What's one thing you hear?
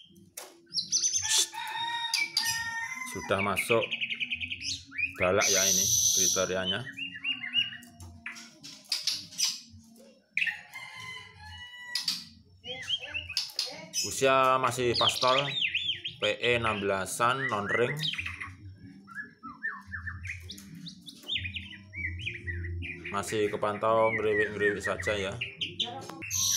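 A songbird sings loud, varied, whistling and chattering phrases close by.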